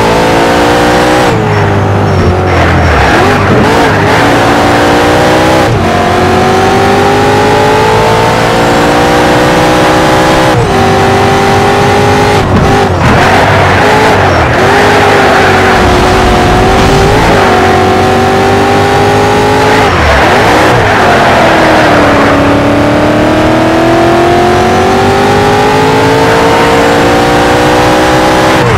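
A racing car engine roars loudly, revving up through the gears and dropping in pitch at each gear change.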